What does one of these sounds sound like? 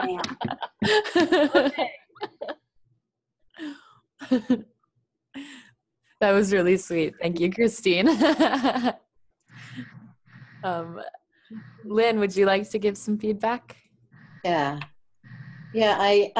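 A woman laughs heartily over an online call.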